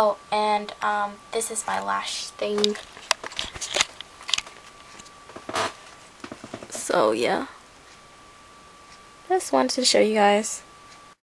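A young woman talks close by, in a cheerful, chatty way.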